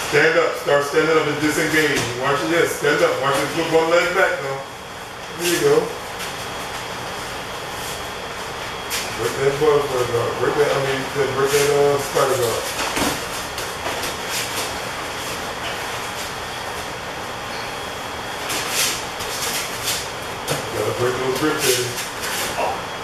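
A man speaks calmly and explains nearby.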